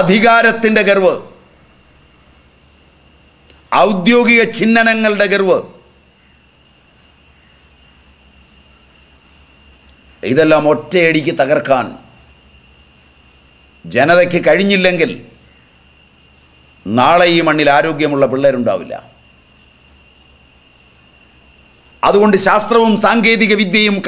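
An elderly man speaks slowly and firmly, close to a microphone, with long pauses.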